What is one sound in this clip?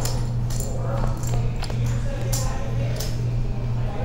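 Poker chips click and clatter together.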